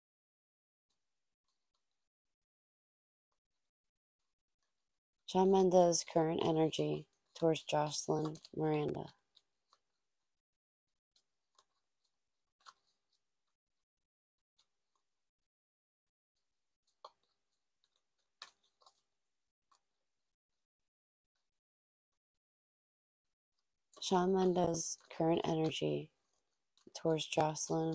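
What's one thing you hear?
Cards shuffle softly in hands.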